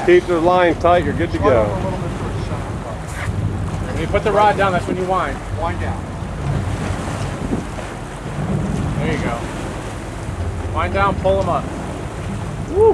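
An elderly man speaks with animation close by.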